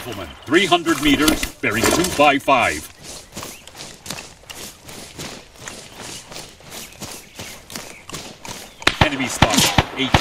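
Footsteps swish steadily through tall grass.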